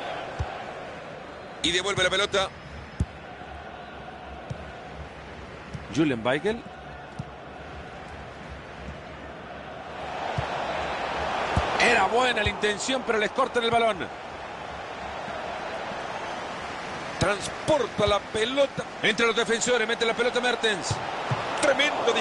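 A large stadium crowd murmurs and swells into cheering.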